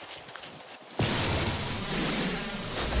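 A mining beam hisses loudly.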